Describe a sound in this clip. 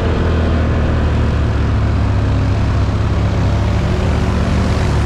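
An all-terrain vehicle engine drones steadily up close.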